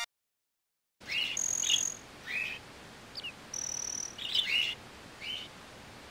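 Short chirping game sound effects come in quick bursts.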